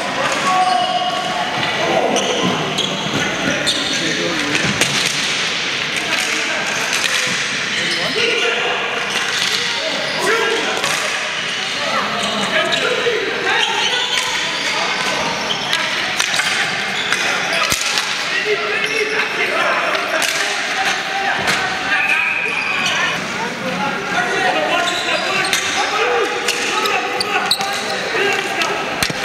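Sticks clack and tap against a ball and each other in an echoing hall.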